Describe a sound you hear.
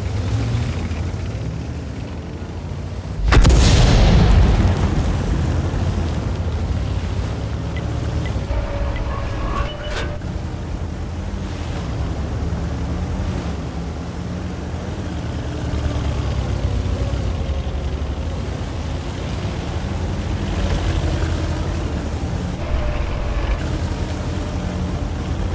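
A tank engine rumbles deeply and steadily as the tank drives.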